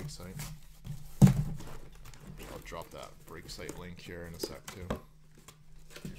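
Cardboard boxes slide and knock against each other.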